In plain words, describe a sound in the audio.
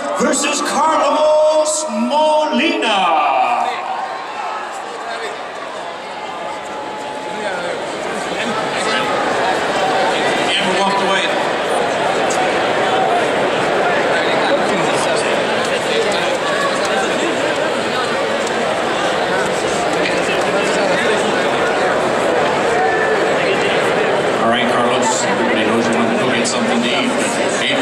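A large crowd cheers and chatters loudly in a big echoing hall.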